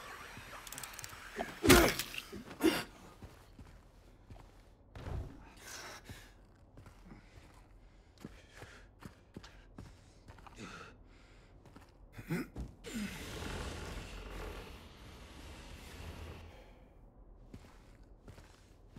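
Footsteps thud on a creaky wooden floor.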